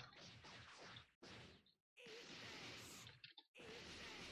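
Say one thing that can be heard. Punches and kicks land with sharp thuds.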